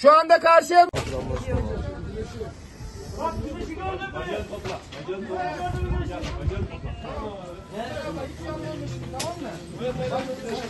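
Several men talk and call out at a distance, outdoors.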